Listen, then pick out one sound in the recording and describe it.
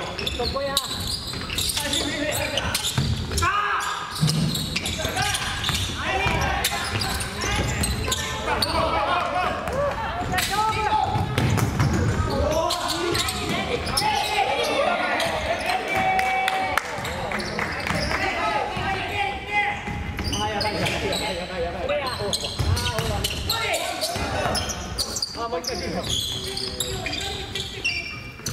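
Young men shout to each other during a game.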